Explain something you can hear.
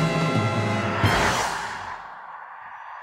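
A car speeds past.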